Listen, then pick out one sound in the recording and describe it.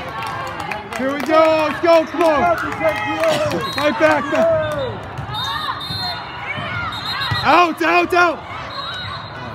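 Young female players shout and call out to each other.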